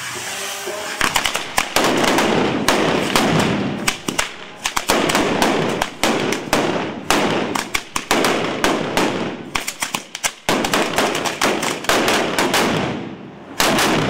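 Firecrackers bang in rapid bursts outdoors.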